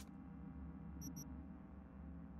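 A game menu cursor gives two quick, high beeps.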